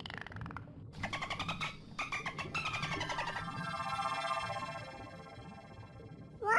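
A dolphin clicks rapidly.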